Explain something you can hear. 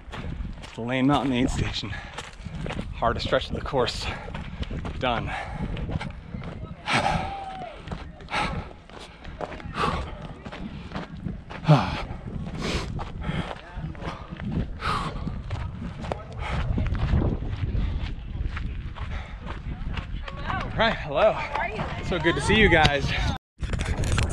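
A man talks breathlessly and close by.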